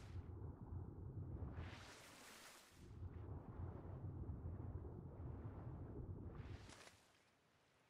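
Water churns in a low, muffled rumble.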